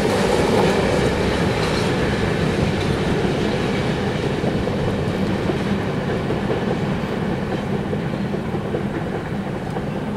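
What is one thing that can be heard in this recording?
A train rumbles away into the distance, slowly fading.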